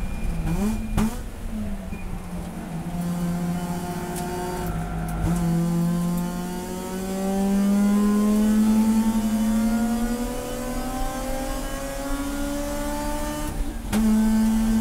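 Gear changes break the engine's roar with sharp shifts in pitch.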